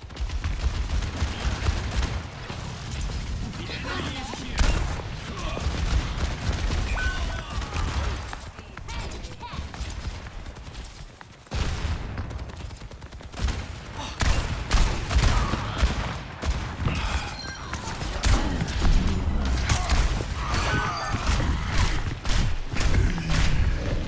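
Shotguns fire in loud, quick blasts.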